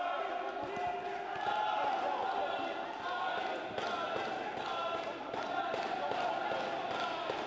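Boxing gloves thud against a body in quick blows.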